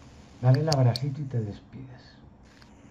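A middle-aged man speaks briefly over an online call.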